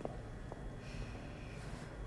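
A woman knocks on a wooden door.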